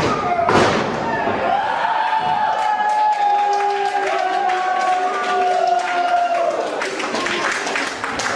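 A crowd cheers and chants loudly in an echoing hall.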